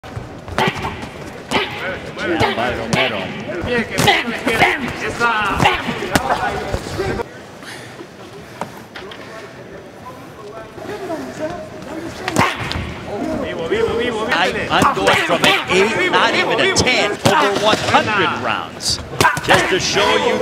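Boxing gloves thud as punches land.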